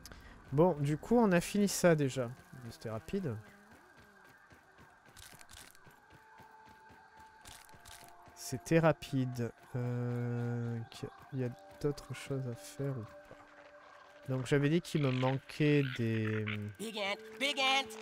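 Footsteps patter quickly across dirt and dry leaves.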